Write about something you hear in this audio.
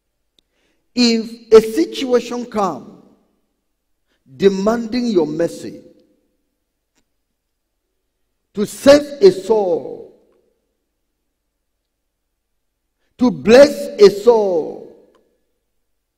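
A man preaches loudly into a microphone in short, emphatic bursts with pauses between them.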